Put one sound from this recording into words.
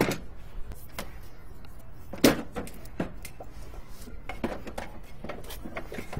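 Metal gear clatters and knocks.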